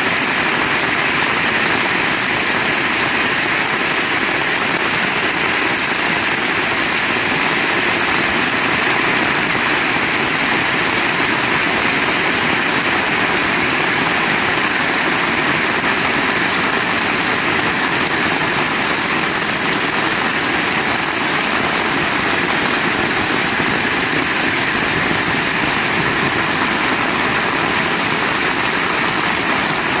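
Rainwater splashes on a wet street.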